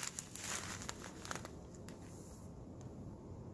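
A plastic bag full of small beads crinkles and rustles in a hand.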